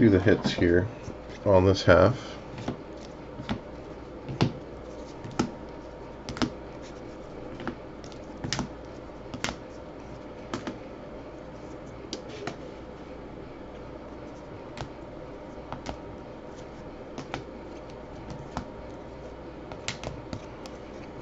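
Plastic card sleeves click and tap as cards are handled.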